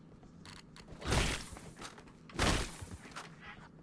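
Loud energy blasts burst and whoosh.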